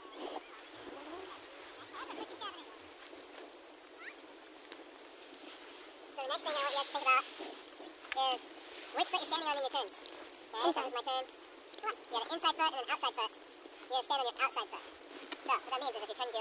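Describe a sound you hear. Skis hiss and scrape over soft snow.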